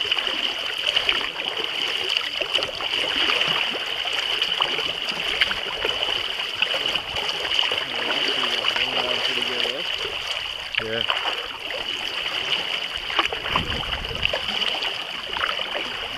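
Small waves lap and splash close by.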